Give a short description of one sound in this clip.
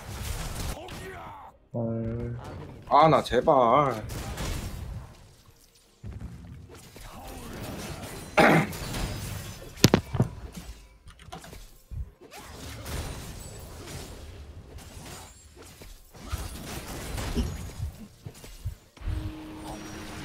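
Fantasy game spells whoosh, crackle and clash during a battle.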